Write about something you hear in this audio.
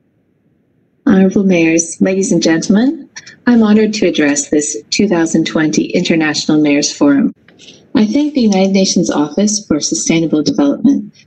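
A woman speaks with animation through a microphone on an online call.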